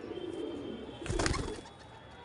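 A pigeon flaps its wings loudly as it takes off.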